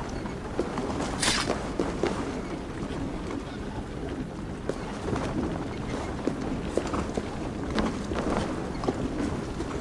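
Footsteps thud on stone and wooden planks.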